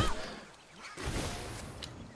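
A jetpack hisses in short bursts.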